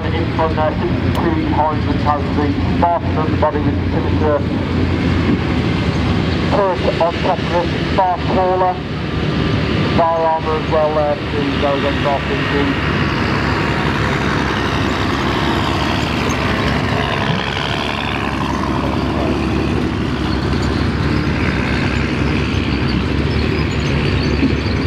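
Heavy tracked vehicles rumble with loud, steady engines nearby.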